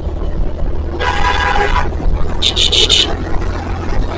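Vehicle horns honk nearby.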